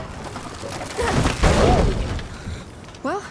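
Wooden planks slide down and crash with a heavy rumble.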